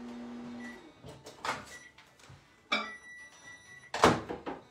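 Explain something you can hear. Objects clatter on a countertop.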